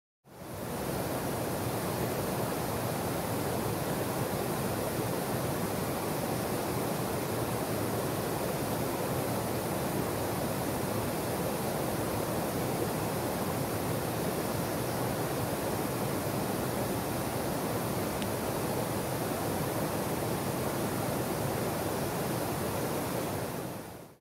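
A swollen river rushes steadily over small waterfalls.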